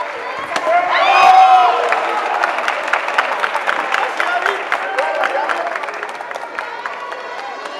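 A crowd cheers and claps, echoing in a large hall.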